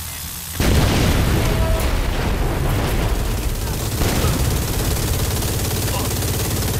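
Fiery explosions boom and rumble.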